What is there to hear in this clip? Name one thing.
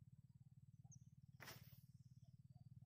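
A fishing rod swishes as it is cast.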